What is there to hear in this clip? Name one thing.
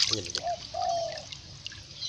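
Water drips back into a pond.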